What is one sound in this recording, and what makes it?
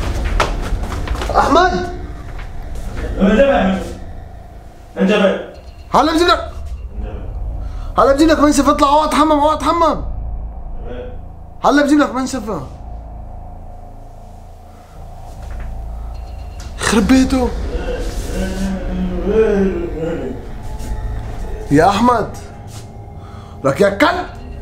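A young man talks close up, with animation, in short bursts.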